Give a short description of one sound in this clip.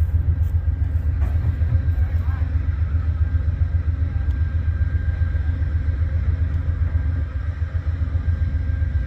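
A passenger train rumbles slowly past close by.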